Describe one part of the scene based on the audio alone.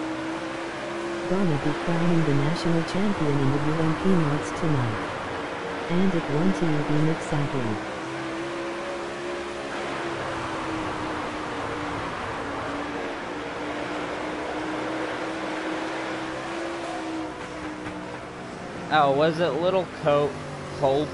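A race car engine roars steadily at high revs.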